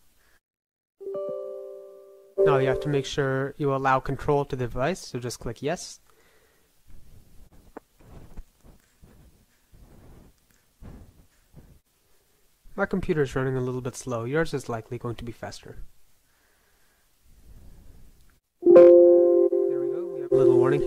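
A computer alert chime sounds.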